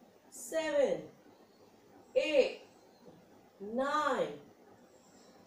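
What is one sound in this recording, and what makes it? A young woman counts aloud calmly, close by, in short bursts.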